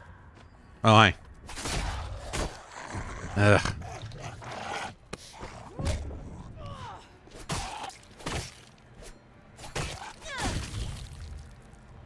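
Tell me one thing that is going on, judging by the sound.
A blade strikes flesh with heavy, wet thuds.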